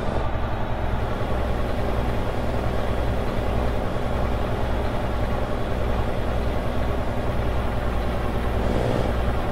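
A truck's diesel engine rumbles steadily as the truck rolls slowly forward.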